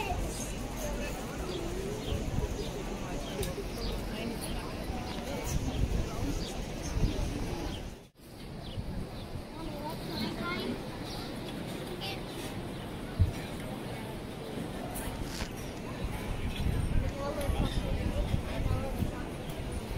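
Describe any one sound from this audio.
Wind gusts into the microphone outdoors.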